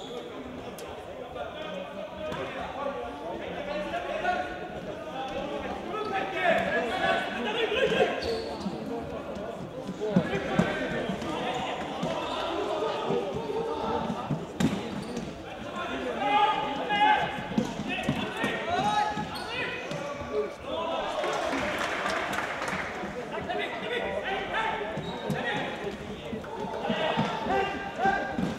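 Young men shout and call out to each other across an echoing hall.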